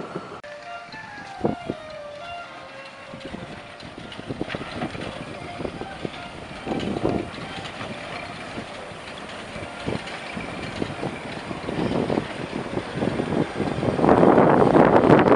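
A steam locomotive chuffs as it slowly pulls away.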